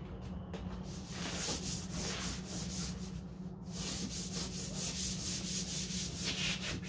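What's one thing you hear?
Sandpaper rasps back and forth over a hard surface in quick, even strokes.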